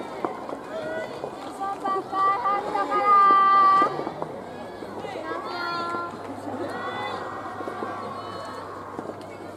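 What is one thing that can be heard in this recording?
Young women shout loudly outdoors.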